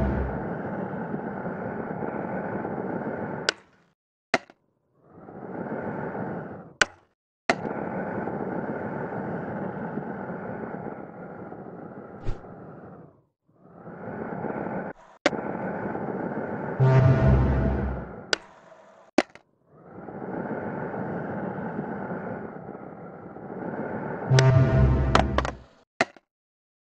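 Skateboard wheels roll with a steady rumble over concrete.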